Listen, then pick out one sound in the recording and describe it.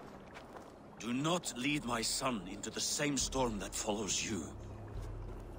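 A man speaks sternly in a deep voice, close by.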